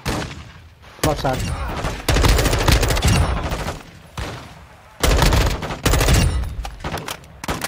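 Rapid bursts of automatic rifle fire ring out loudly.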